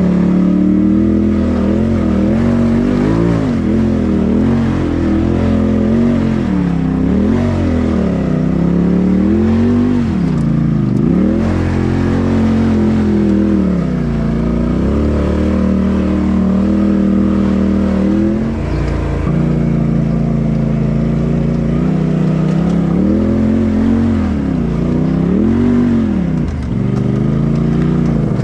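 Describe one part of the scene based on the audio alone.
An off-road vehicle's engine revs up and down loudly, close by.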